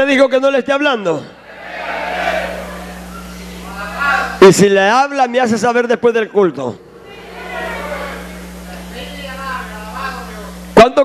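A man sings through a microphone and loudspeakers in an echoing room.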